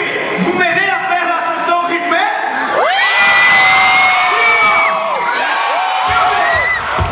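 A young man sings loudly through a microphone over a loud concert sound system.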